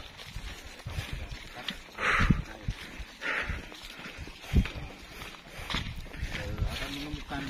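Footsteps crunch and rustle through dry grass and leaves.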